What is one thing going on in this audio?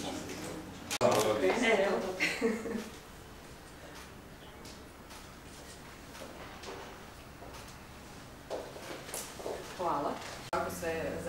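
A woman speaks calmly.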